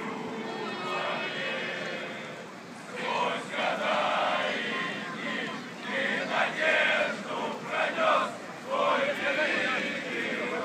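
A crowd of fans chants and sings loudly in the distance outdoors.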